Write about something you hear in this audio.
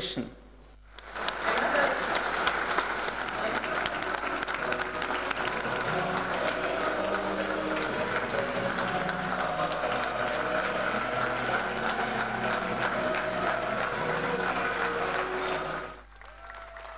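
A large crowd applauds steadily in a big room.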